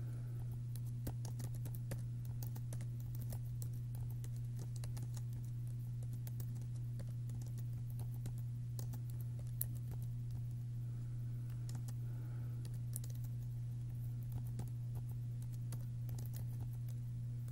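Keys clatter as someone types on a keyboard.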